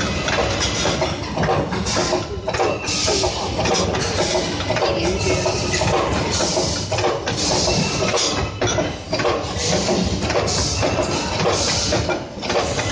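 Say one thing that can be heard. A machine hums and whirs loudly.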